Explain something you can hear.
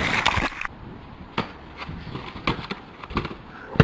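A snowboarder thumps down hard into snow.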